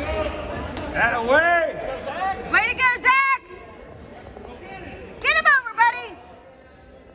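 A man shouts loudly and repeatedly nearby.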